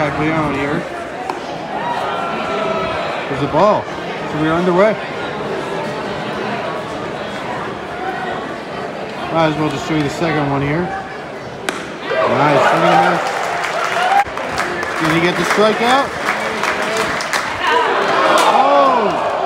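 Nearby spectators talk and call out loudly.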